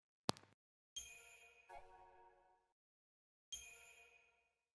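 Short electronic chimes ring out.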